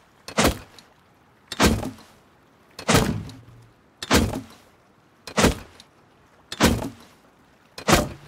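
A hammer strikes wood in loud, regular blows.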